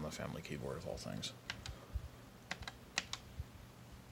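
Keyboard keys click as a finger presses them.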